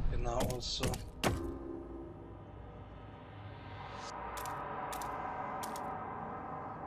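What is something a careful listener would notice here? Short interface clicks sound.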